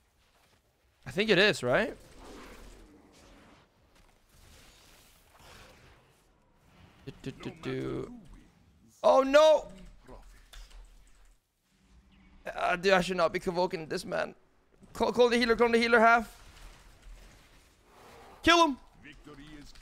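A young man talks with animation into a close microphone, in bursts.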